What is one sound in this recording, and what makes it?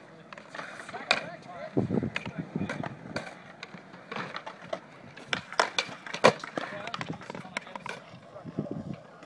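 A skateboard knocks and clacks on concrete.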